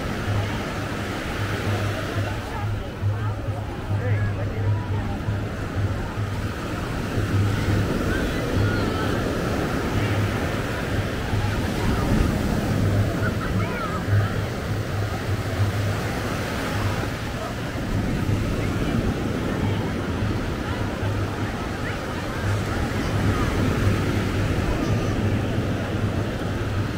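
Many people chatter in the distance, outdoors.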